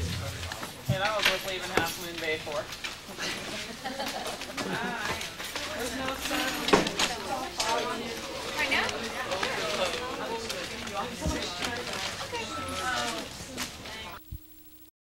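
Several adults talk and chatter at once in a room.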